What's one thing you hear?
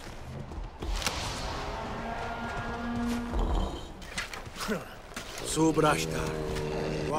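A man shouts and groans up close.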